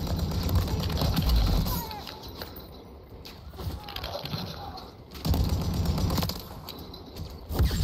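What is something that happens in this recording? A rifle fires in bursts.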